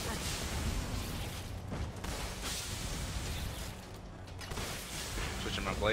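Bursts of gas hiss and whoosh.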